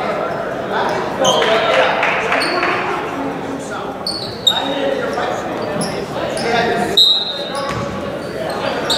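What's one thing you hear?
A crowd murmurs and cheers in a large echoing gym.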